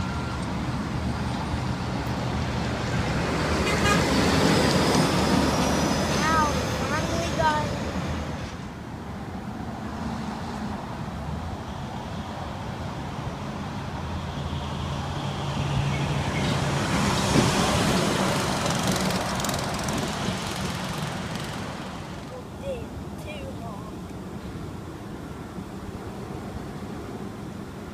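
A freight train rumbles along steadily.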